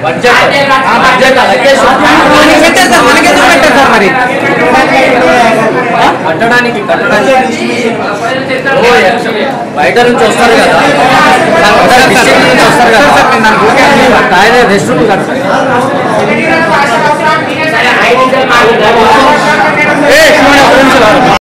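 A crowd of young men chatters loudly, echoing in a large hall.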